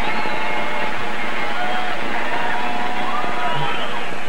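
Electric guitars play loudly through stage speakers.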